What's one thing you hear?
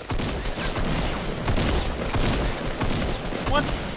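Shotgun blasts boom in quick succession.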